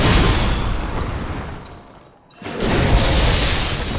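Electricity crackles and zaps loudly.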